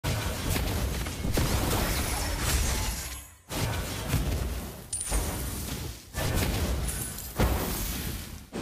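Fiery spell blasts whoosh and crackle.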